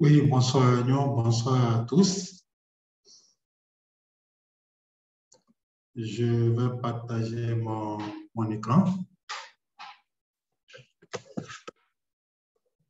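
A middle-aged man speaks calmly and close to the microphone, in bursts with pauses.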